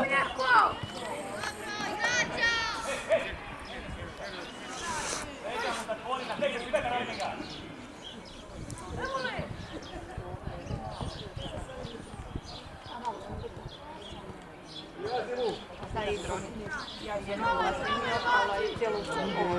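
Adult spectators chat close by.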